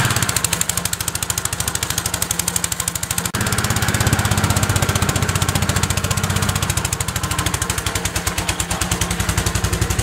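A small petrol engine chugs steadily outdoors.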